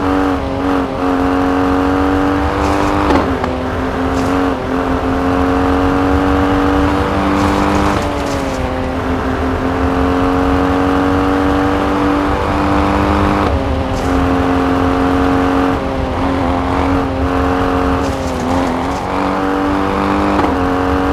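A rally SUV engine revs high and shifts through the gears.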